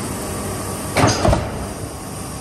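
A large metal press slams down with a heavy double thud.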